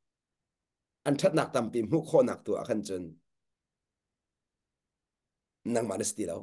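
A man speaks calmly and warmly through an online call.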